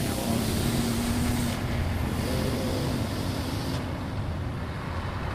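A heavy truck engine rumbles as the truck drives along a road.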